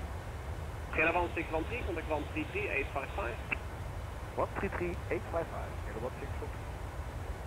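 A young man speaks casually into a microphone, close by.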